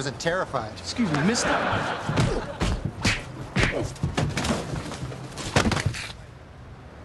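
Punches and blows thud during a scuffle.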